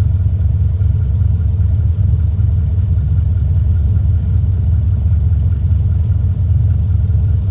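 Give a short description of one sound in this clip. A small propeller plane's engine idles with a steady low drone.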